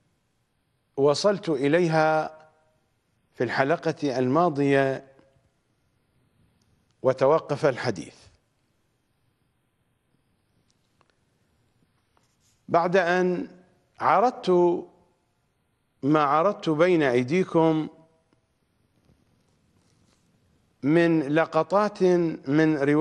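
A middle-aged man speaks calmly and deliberately into a microphone, with long pauses.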